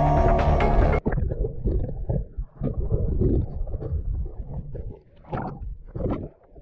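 Water swishes and rumbles, muffled underwater.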